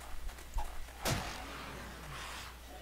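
A club strikes a zombie with a wet thud.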